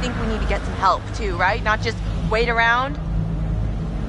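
A young woman speaks with urgency, close by.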